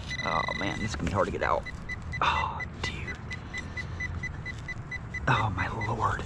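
A trowel scrapes and digs into soil.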